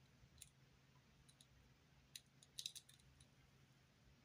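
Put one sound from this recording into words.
Small plastic bricks click and snap together between fingers.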